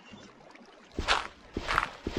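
Blocks of dirt crunch as they are dug.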